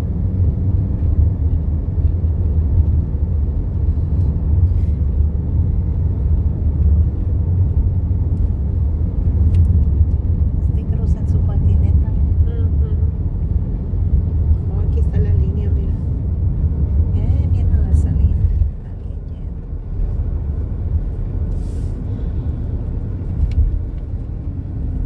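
A car's tyres rumble on a highway, heard from inside the car.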